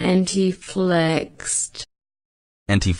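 A woman says a single word clearly through a loudspeaker.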